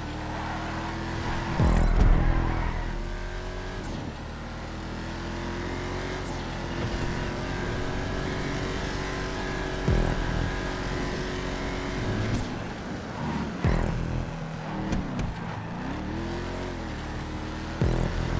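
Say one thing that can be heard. A car engine roars steadily, rising and falling in pitch as it revs.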